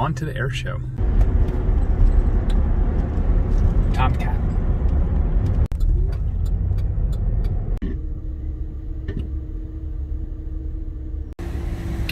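A car engine hums with a low road rumble from inside the car.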